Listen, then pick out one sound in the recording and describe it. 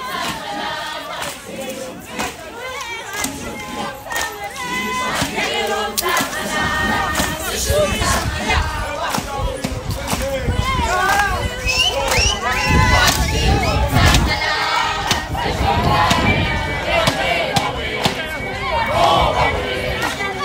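A large group of women sings together outdoors.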